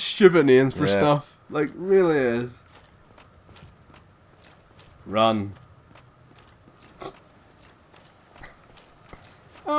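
Armoured footsteps clatter quickly on stone.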